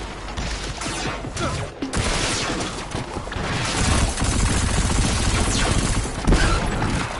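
A laser beam hums and crackles.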